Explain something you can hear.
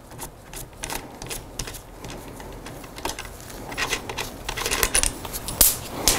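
Small metal parts click and tap as a bicycle stem is adjusted.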